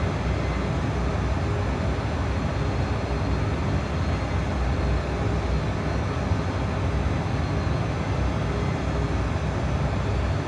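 Jet engines roar in a low, steady drone.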